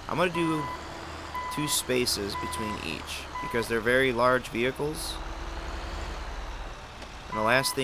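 A truck engine rumbles low as the truck reverses slowly.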